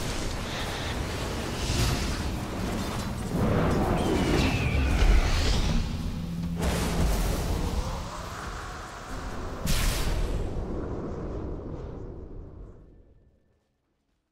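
Magic spells crackle and whoosh in a video game battle.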